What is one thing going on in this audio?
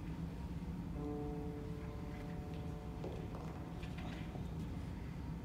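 A piano plays a few short notes.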